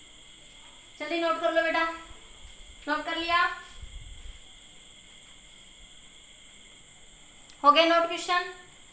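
A woman speaks nearby in short, calm phrases.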